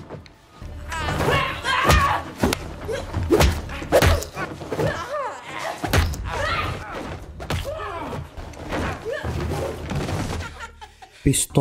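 A woman screams and cries out in panic close by.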